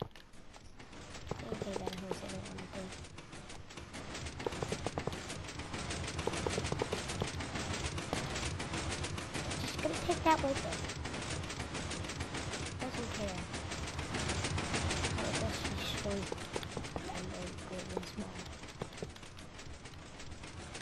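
Blocks are placed with soft, quick thuds.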